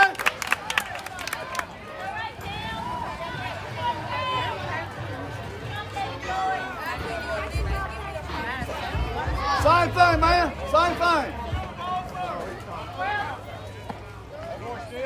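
Young children shout and cheer outdoors.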